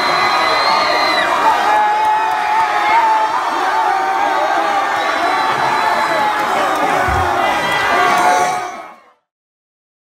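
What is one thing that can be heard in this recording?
A crowd of young men cheers and shouts loudly outdoors.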